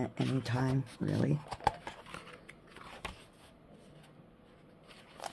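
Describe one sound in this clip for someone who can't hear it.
A paper page is turned with a soft rustle.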